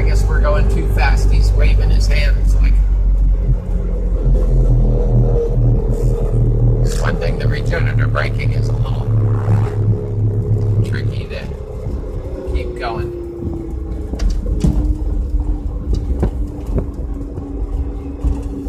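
A car engine hums and rumbles steadily while driving.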